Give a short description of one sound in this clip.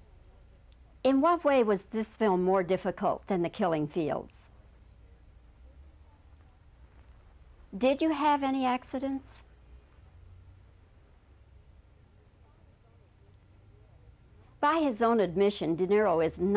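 A middle-aged woman speaks calmly and clearly, close to a microphone.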